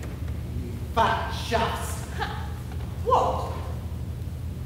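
A young woman speaks loudly and expressively on a stage with some echo.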